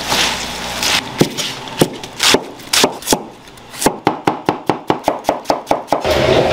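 A knife chops rapidly on a cutting board.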